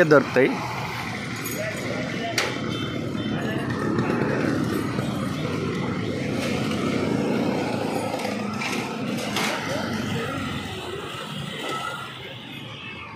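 Motorbike engines hum and buzz past on a busy street.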